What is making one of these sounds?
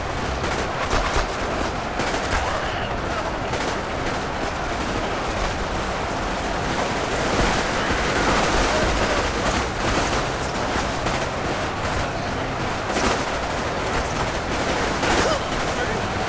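Blasts thump now and then amid the battle.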